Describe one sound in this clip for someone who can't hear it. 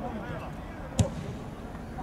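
A football is kicked hard with a sharp thump.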